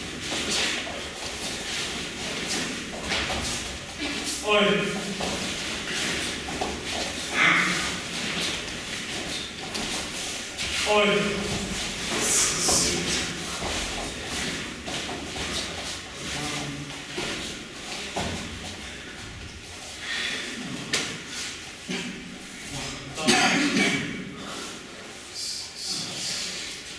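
Bare feet thump and shuffle on mats.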